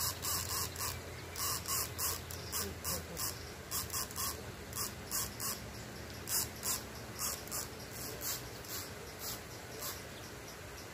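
A fishing reel clicks as a line is wound in.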